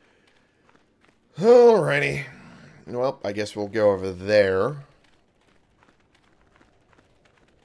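Footsteps run on sand.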